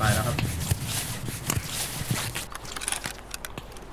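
A rifle rattles as it is raised.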